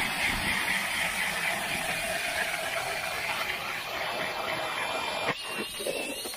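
A cordless drill whirs loudly as an ice auger bores through ice.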